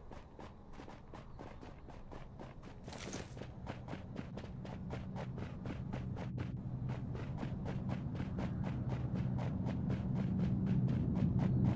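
Footsteps run quickly over grass and pavement.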